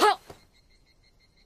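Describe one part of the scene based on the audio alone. A man gives a short, firm reply.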